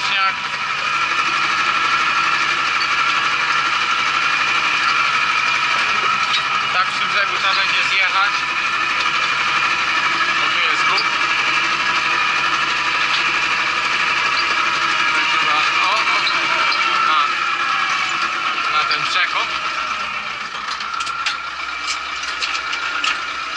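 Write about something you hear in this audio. A harrow rattles over the soil.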